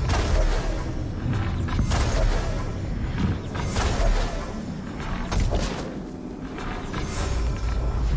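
Arrows fly from a bow with sharp, quick twangs.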